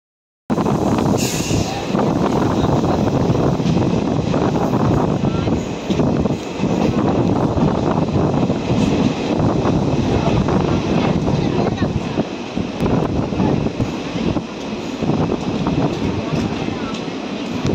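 A train rumbles and rattles loudly along the tracks.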